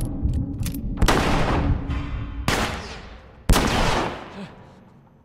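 Gunshots boom loudly, one at a time, and echo off hard walls.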